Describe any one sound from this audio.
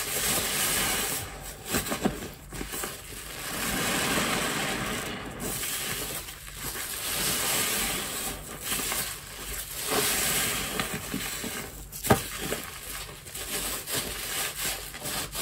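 Wet foam squelches and crackles as a soapy sponge is squeezed in water.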